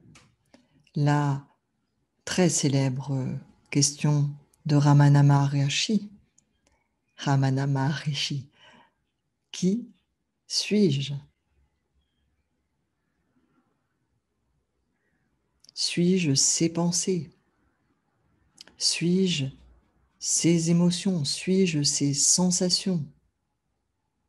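A middle-aged woman speaks calmly and warmly into a microphone, with pauses.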